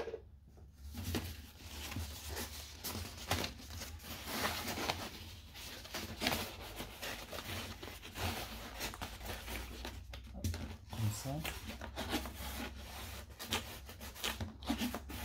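Stiff paper rustles and crinkles as hands fold and press it.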